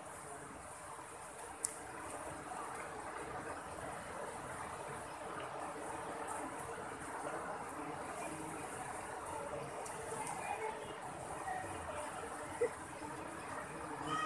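Elephants splash as they wade through water.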